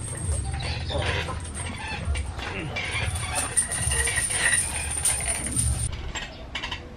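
Heavy chains clink as homemade concrete weights are passed over.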